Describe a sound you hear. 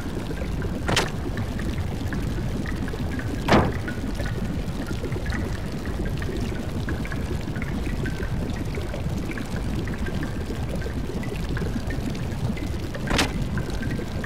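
A heavy door thuds.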